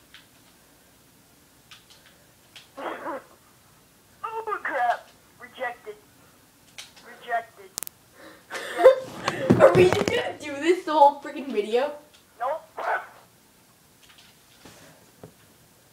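Cartoonish game sound effects play from a television.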